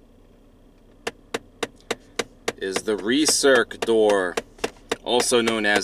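A car's climate control button clicks as a finger presses it.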